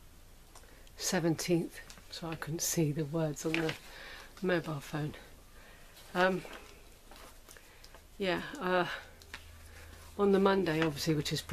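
A middle-aged woman speaks calmly and cheerfully close by, in short phrases with pauses.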